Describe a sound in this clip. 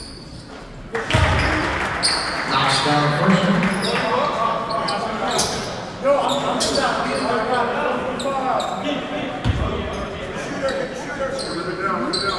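A crowd of spectators cheers and chatters loudly.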